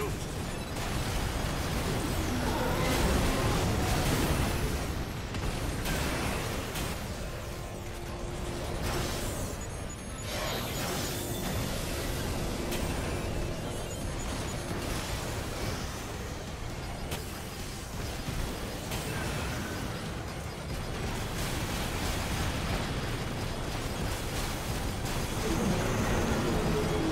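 Guns fire in rapid bursts with sharp explosions.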